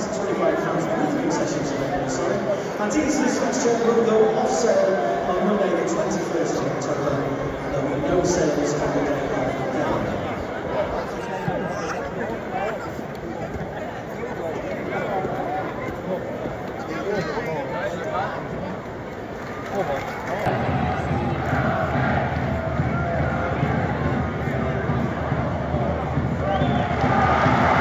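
A large football stadium crowd murmurs and chatters in the open air.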